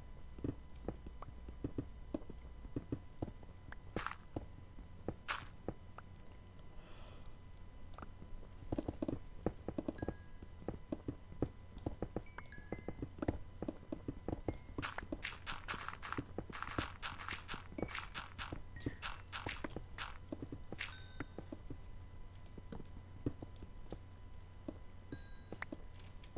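Pickaxe strikes chip and crack against stone in a rapid series.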